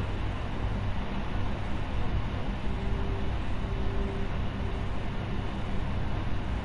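A spaceship's engines hum with a low, steady rumble.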